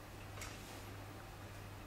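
A finger taps lightly on a touchscreen.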